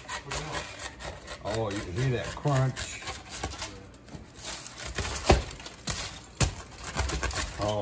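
A pizza cutter crunches through crust.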